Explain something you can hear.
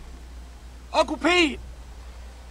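A girl shouts a name.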